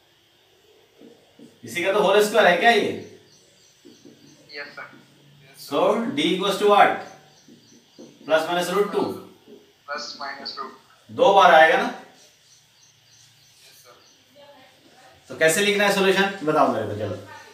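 A middle-aged man explains calmly into a close microphone, in bursts with pauses.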